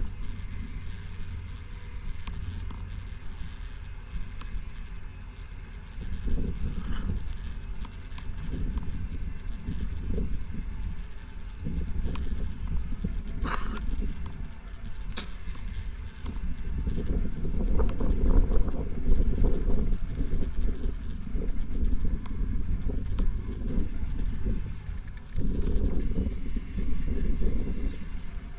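Wind rumbles and buffets outdoors, gusting stronger and weaker.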